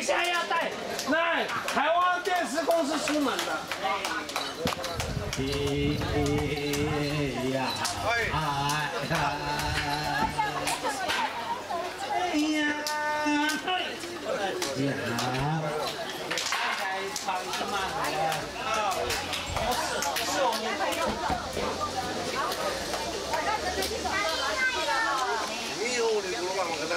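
A crowd of people talk and chatter nearby outdoors.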